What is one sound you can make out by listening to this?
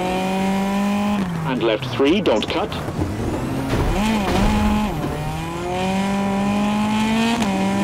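A rally car engine revs hard, rising and dropping in pitch as it shifts gears.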